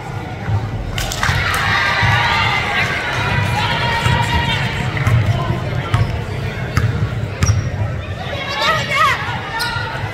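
A crowd of spectators cheers and shouts.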